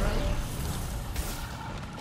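An energy shield crackles and sparks.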